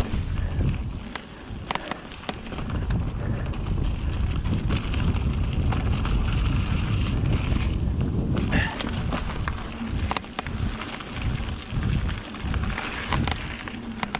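A bike's frame and chain rattle and clatter over bumps.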